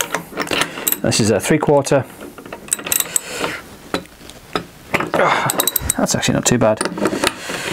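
A metal tool scrapes and clicks against a propeller hub.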